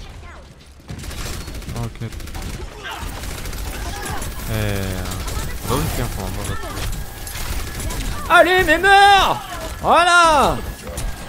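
Rapid gunfire crackles in a video game.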